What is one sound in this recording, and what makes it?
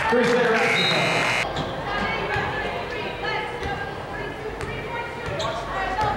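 A crowd of spectators murmurs and calls out in a large echoing gym.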